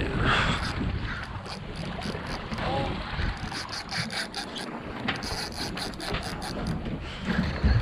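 A fishing reel clicks and whirs as it is cranked.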